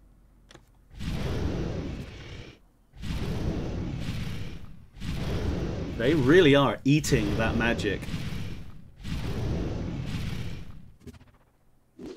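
Fire roars and whooshes in repeated bursts.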